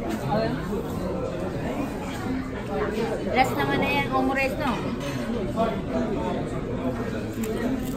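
Chopsticks and utensils clink against plates.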